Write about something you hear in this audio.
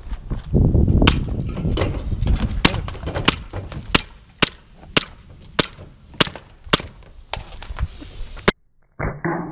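An airsoft pistol fires in quick, sharp snaps.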